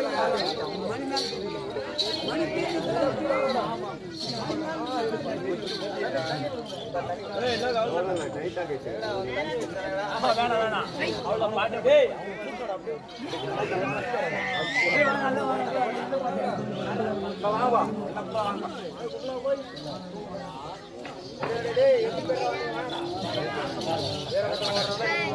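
A crowd of men and women chatter and call out together outdoors.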